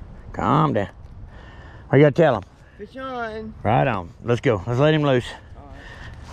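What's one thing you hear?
A young man speaks excitedly close by.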